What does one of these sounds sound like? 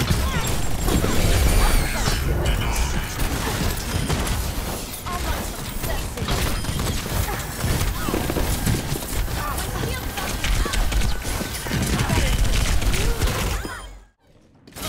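Explosions boom heavily.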